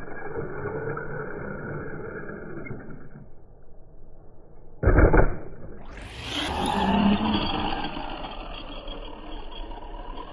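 A radio-controlled car's electric motor whines as it races and jumps.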